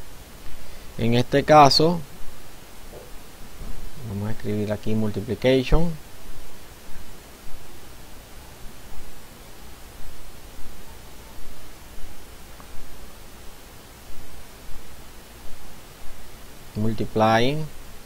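A middle-aged man speaks calmly into a microphone in short phrases.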